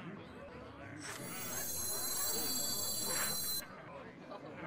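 A bright magical shimmer rings out as a game card is played.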